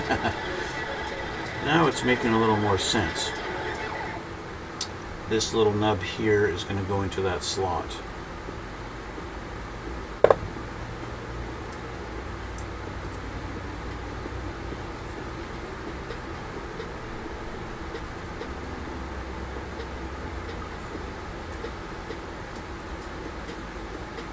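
Small plastic parts click softly as hands handle them.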